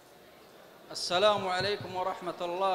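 A man chants loudly into a microphone through loudspeakers.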